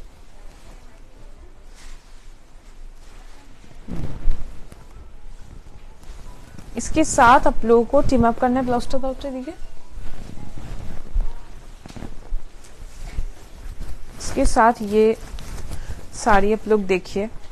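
Silk fabric rustles as it is handled close by.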